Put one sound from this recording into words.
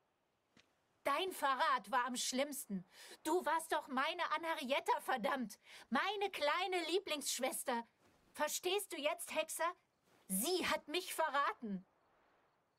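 A young woman speaks close by with anger and emotion.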